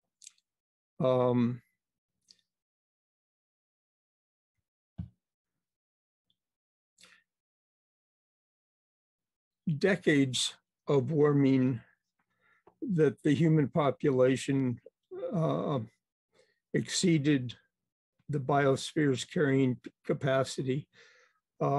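An elderly man speaks calmly through an online call microphone, pausing between phrases.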